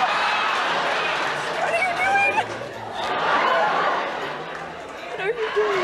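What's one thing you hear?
A studio audience laughs and cheers loudly.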